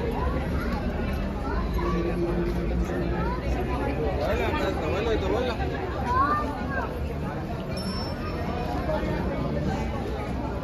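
Many men and women chatter all around outdoors in a busy crowd.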